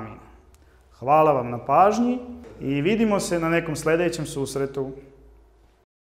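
A young man speaks calmly and clearly into a microphone close by.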